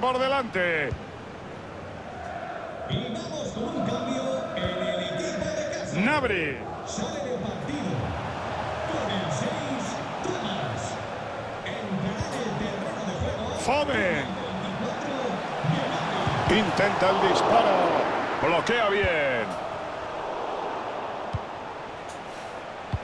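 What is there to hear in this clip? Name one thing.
A football is kicked with dull thuds now and then.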